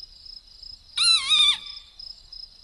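A mouse squeaks in a high, wavering voice.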